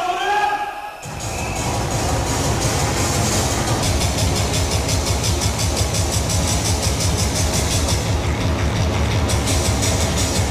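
Loud dance music with a pounding beat plays through speakers.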